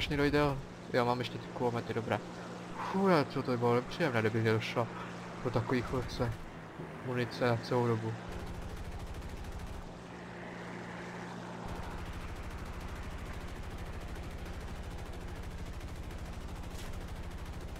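A propeller aircraft engine drones steadily.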